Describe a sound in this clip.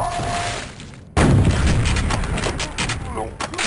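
Game explosions boom.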